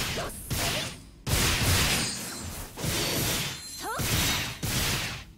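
Magic spells burst and whoosh in loud, repeated blasts.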